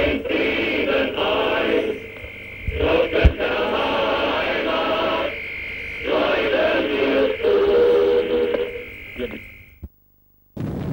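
Music plays through an old radio loudspeaker.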